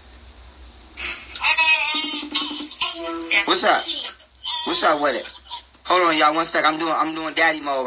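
A young man talks with animation into a phone microphone, close by.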